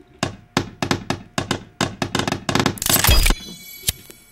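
Wooden sticks knock and clatter together.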